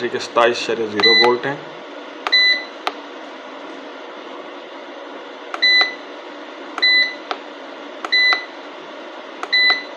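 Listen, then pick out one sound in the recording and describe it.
An electronic device beeps briefly each time a button is pressed.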